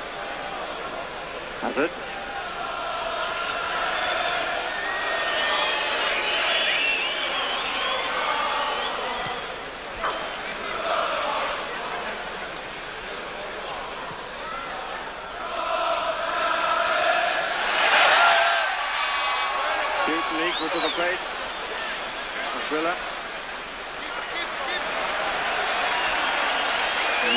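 A large stadium crowd roars and chants steadily throughout.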